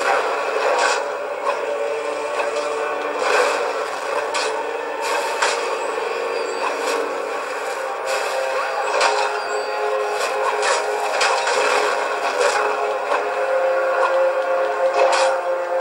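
Loud action game sounds with crashes and bangs play through a small television speaker.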